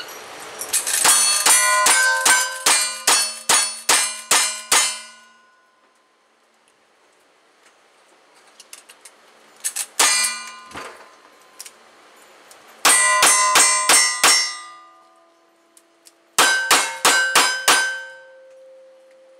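Bullets strike metal targets with a ringing clang.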